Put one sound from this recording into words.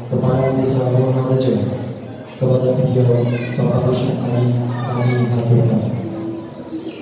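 A man chants loudly through a microphone.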